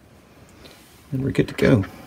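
A plug clicks into a socket.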